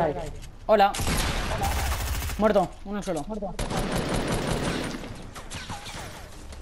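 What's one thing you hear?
Gunshots fire in quick bursts in a video game.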